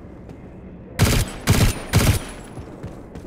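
Loud gunshots boom three times in quick succession.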